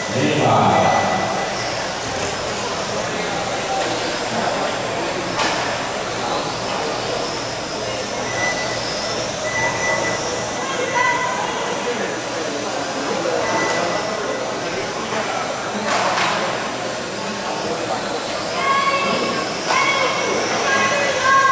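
Small remote-control car motors whine as the cars race around.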